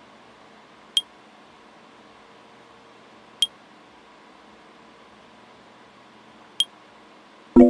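Short interface clicks sound a few times.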